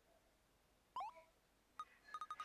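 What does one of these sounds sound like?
A bright electronic chime rings as a menu opens.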